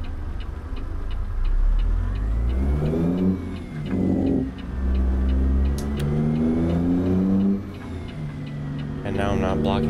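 A truck engine revs up as it pulls away.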